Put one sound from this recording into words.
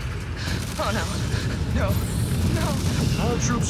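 Explosions boom and roar with fire.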